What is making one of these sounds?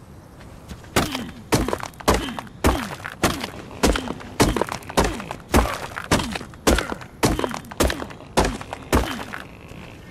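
A hatchet chops rhythmically against a wooden door.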